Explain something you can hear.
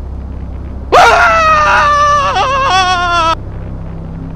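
A man screams loudly and shrilly, close up.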